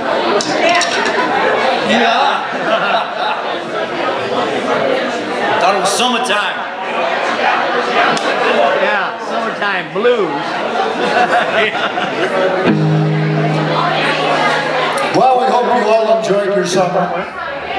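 An electric guitar plays loudly through an amplifier.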